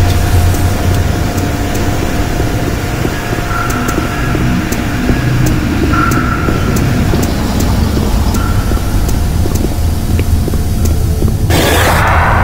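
Footsteps clank steadily on metal grating.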